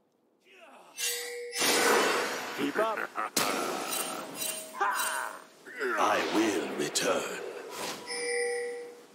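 Game spells and attacks whoosh and crackle in quick bursts.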